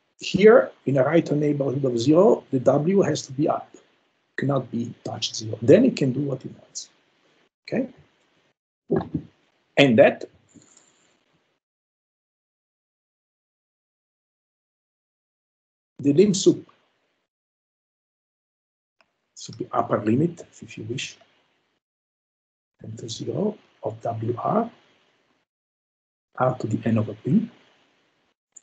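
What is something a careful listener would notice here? A man speaks calmly in a lecture, heard through an online call, with pauses.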